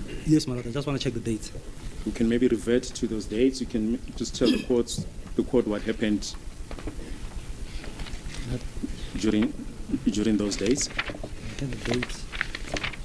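A middle-aged man speaks calmly and formally into a microphone.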